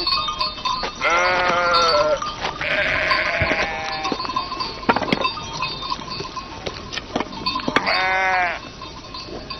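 Goats bleat loudly nearby, over and over.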